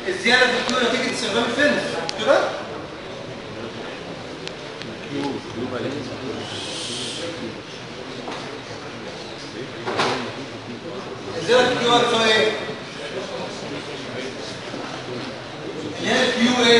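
A man speaks in a lecturing tone.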